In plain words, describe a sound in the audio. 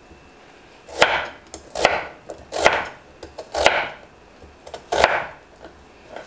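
A knife chops through an onion onto a wooden board with sharp thuds.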